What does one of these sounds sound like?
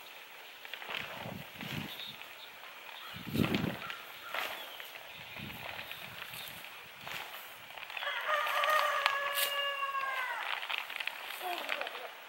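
Plastic sheeting rustles and crinkles as it is dragged over grass.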